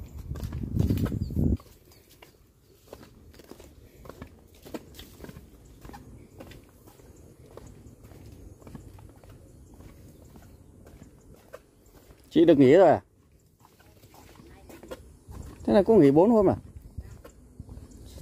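Footsteps crunch softly over dry leaves and ground.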